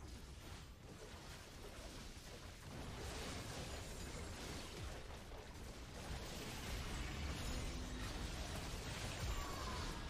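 Spell effects whoosh and burst in a video game battle.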